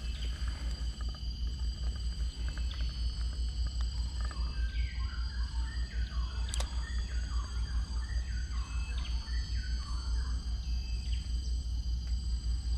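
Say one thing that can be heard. A fishing reel winds with a steady, quick whirring.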